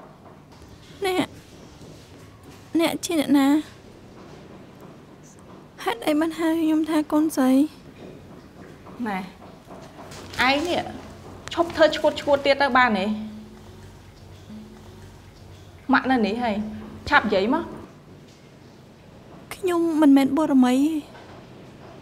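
A young woman speaks in a shaky, upset voice close by.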